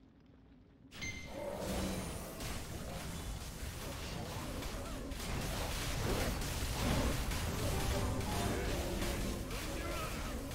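Magic blasts and heavy impacts crash rapidly during a fight.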